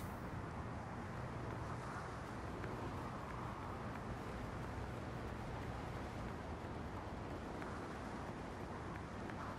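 Footsteps run quickly across a hard rooftop.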